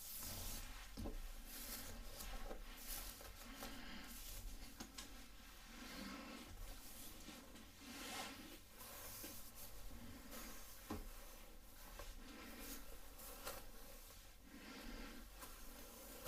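A comb rasps through hair.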